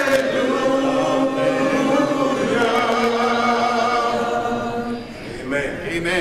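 A middle-aged man sings into a microphone, with long held notes.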